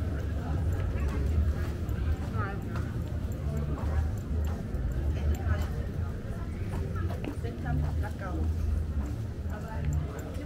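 Footsteps tap on paving stones.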